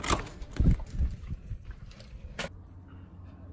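A door latch clicks open.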